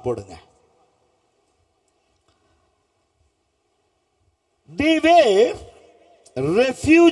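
A middle-aged man speaks in a drawn-out, sing-song voice through a microphone.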